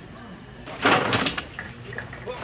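Meat pieces tumble out of a plastic bag into a metal bowl.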